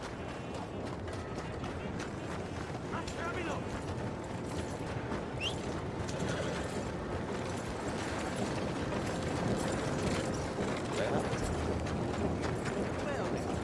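Footsteps crunch on a dirt road.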